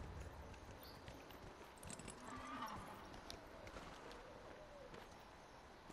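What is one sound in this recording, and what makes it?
Horse hooves clop on dirt.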